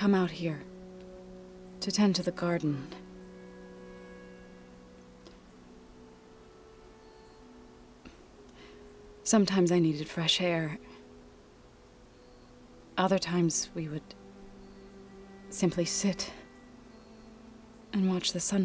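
A young woman talks into a microphone in short bursts.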